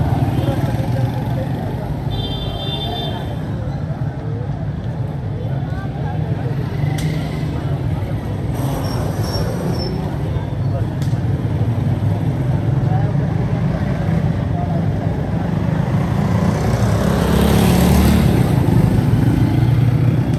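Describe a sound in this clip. A minivan engine hums as the van rolls slowly along a street.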